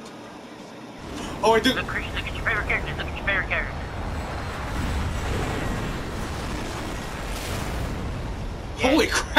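A loud explosion booms and then rumbles on for several seconds.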